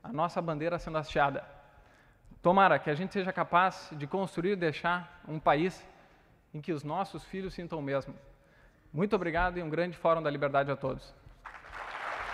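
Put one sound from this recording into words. A man speaks calmly into a microphone over loudspeakers in a large hall.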